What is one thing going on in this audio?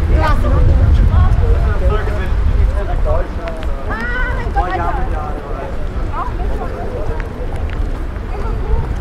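Several people talk in the distance.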